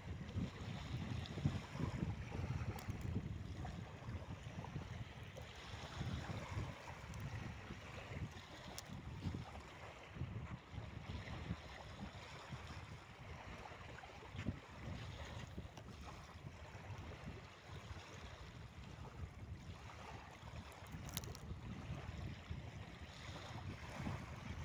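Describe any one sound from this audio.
Wind blows in gusts against the microphone outdoors.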